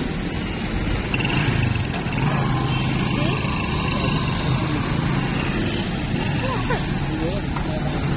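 A motorcycle engine rumbles nearby as it pulls away slowly.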